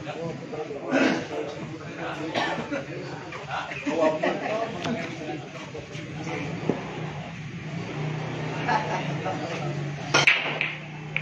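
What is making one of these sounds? A cue strikes a billiard ball with a sharp click.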